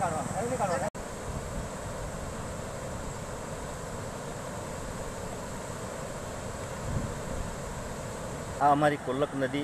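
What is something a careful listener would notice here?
Floodwater rushes steadily over a low causeway.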